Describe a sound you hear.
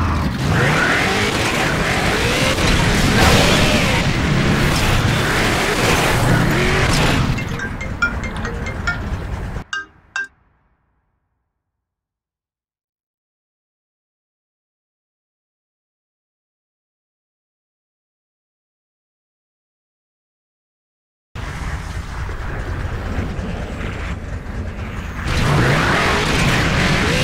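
A vehicle engine rumbles and roars.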